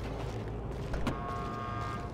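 A van door clicks open.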